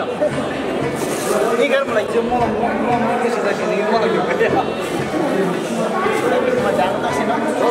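A crowd of men and women talks and murmurs nearby.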